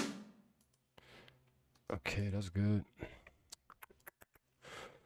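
A man speaks close to a microphone, in short bursts.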